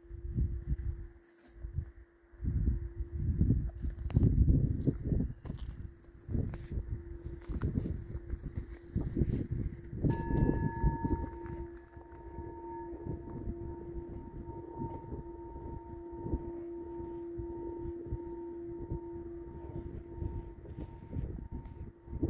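A crystal singing bowl rings with a sustained tone, swelling again partway through.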